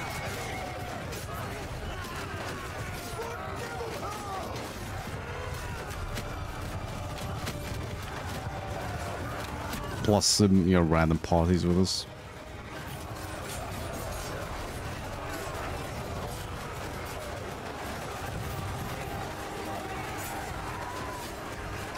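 Swords and shields clash and clatter in a large battle.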